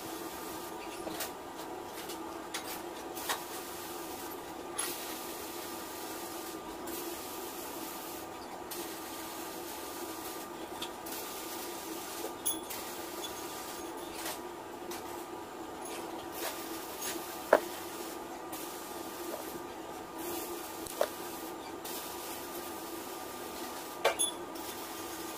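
Pliers click as they grip and bend thin wire.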